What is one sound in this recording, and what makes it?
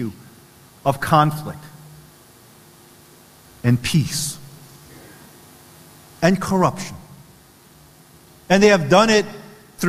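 A man speaks slowly and calmly into a microphone, in short phrases with pauses, echoing in a large hall.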